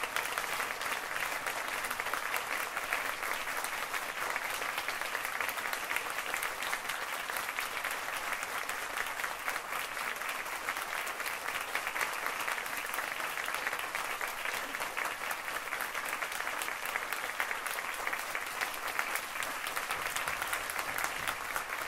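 A large audience claps steadily.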